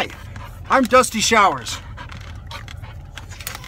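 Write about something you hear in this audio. A dog licks wetly with quick smacking sounds.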